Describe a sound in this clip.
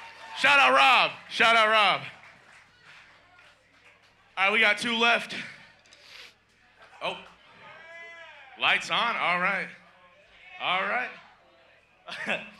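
A man shouts and sings into a microphone.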